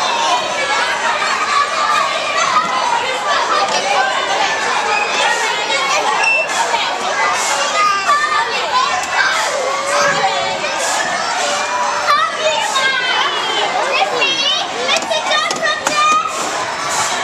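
A crowd of children chatters and shouts in the background.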